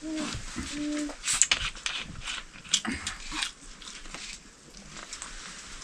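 A plastic bottle crackles as a young man handles it.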